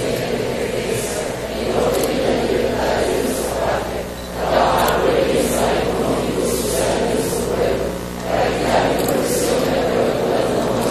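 A large crowd of men and women prays aloud together, voices overlapping in a large echoing hall.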